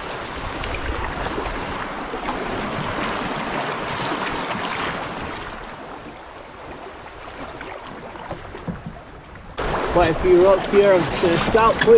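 A wooden canoe paddle dips and pulls through the water.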